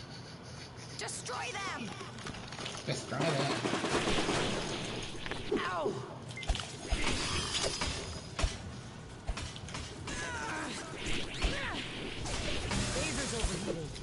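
Laser blasts and zaps go off in a video game.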